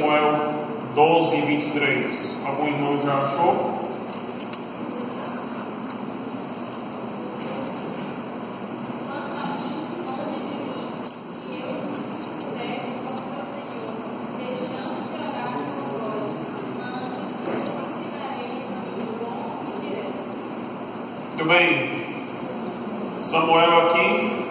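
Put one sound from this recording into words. A man speaks steadily into a microphone, heard through loudspeakers in an echoing hall.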